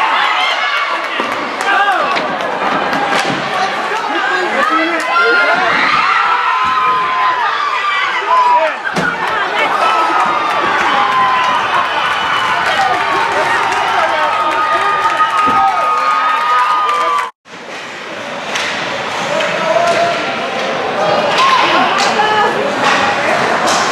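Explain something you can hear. Hockey sticks clack against the puck and each other.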